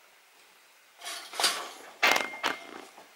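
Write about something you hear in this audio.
A metal gate latch clanks and rattles.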